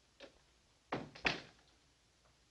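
A door slams shut.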